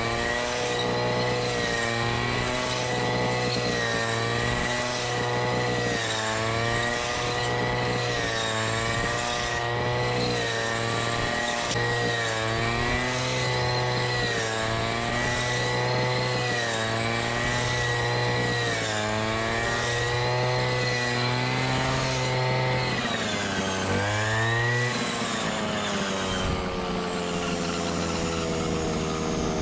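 A grass trimmer whirs loudly, its pitch dipping as it cuts through thick grass.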